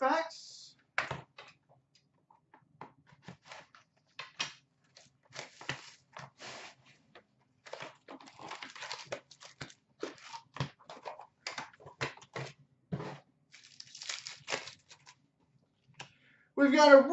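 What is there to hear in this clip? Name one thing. Cards rustle and tap as they are handled.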